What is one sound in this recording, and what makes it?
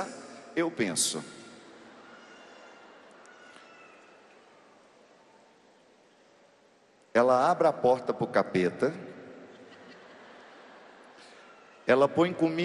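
A man speaks with animation through a microphone in a large echoing hall, with long pauses.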